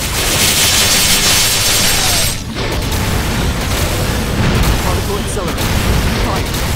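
Video game spell effects crash and crackle rapidly.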